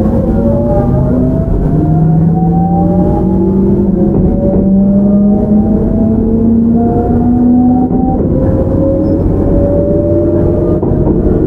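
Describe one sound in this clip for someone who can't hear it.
An electric train's motor whines, rising in pitch in repeated steps.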